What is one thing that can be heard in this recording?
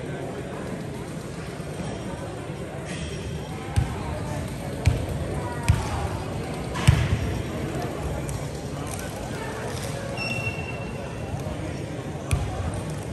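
A crowd of people chatters in a large echoing gym.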